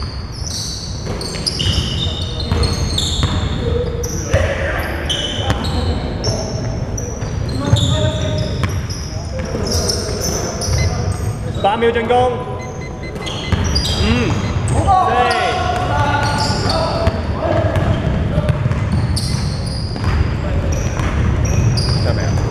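Basketball shoes squeak on a hardwood court in a large echoing hall.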